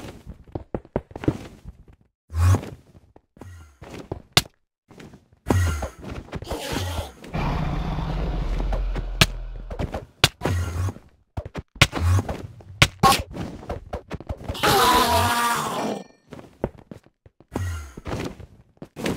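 Stone blocks break with short, sharp cracking knocks.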